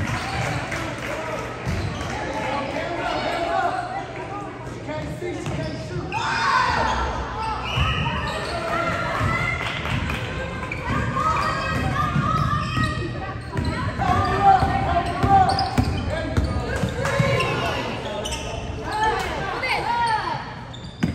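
Young women shout and call out across a large echoing gym.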